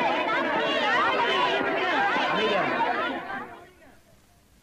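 A large crowd shouts and clamours loudly.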